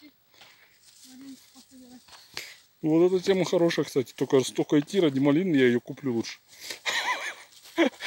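Tall leafy plants rustle and swish as someone pushes through dense undergrowth.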